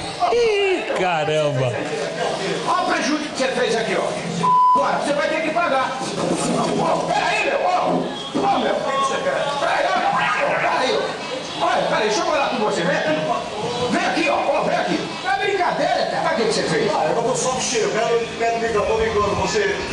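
An older man argues back loudly.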